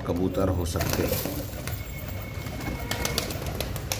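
Pigeons flap their wings as one takes off.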